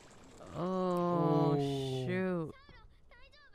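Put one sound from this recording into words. A young woman speaks with animation into a microphone close by.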